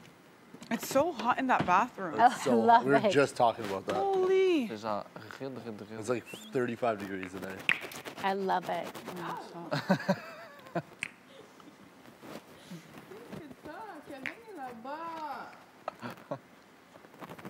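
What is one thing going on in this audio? Two young men talk casually close by.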